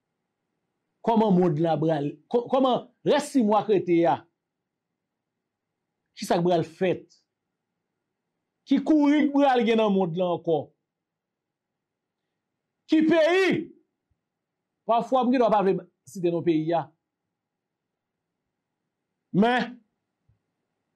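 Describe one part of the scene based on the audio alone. A man speaks calmly into a microphone, pausing often.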